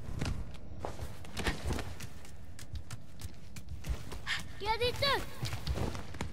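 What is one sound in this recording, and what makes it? Footsteps patter quickly over stone.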